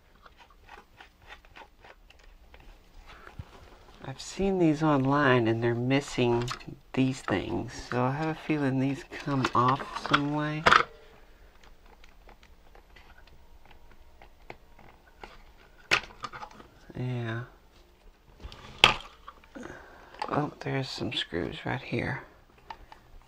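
Plastic parts click and rattle as hands take apart a toy.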